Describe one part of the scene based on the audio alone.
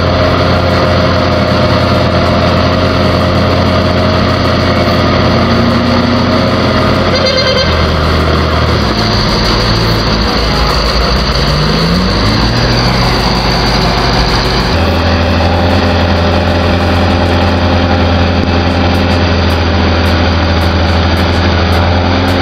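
A heavy diesel engine rumbles and labours.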